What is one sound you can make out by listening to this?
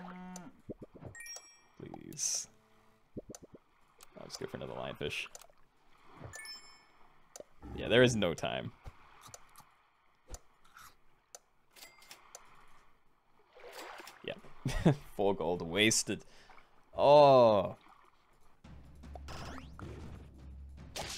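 Cartoon game sound effects pop, chime and squeak in short bursts.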